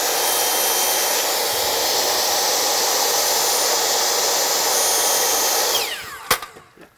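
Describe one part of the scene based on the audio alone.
A miter saw whines loudly as it cuts through wood.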